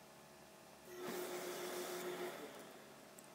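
A steam iron hisses briefly.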